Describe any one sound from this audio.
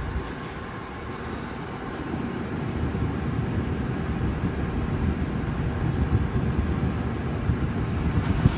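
A car engine idles with a steady low rumble that slowly grows louder.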